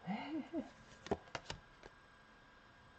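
Playing cards flick and rustle as they are shuffled by hand.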